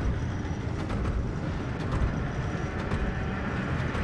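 Large fans whir with a deep, steady rumble.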